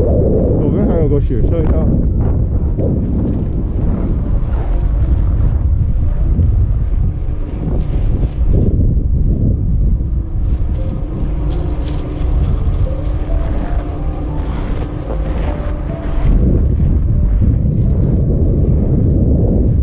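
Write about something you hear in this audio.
A snowboard slides and scrapes softly over snow.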